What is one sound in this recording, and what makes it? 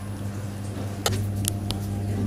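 A ceramic lid clinks down onto a metal pan.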